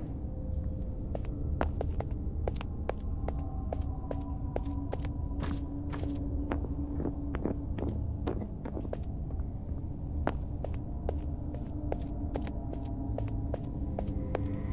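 Quick footsteps clatter on a hard floor and echo in a narrow passage.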